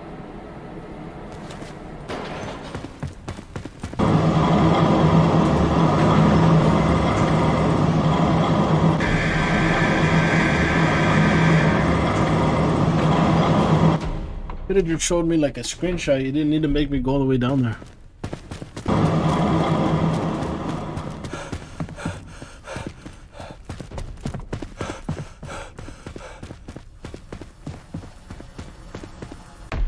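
Footsteps thud on a hard floor and metal stairs.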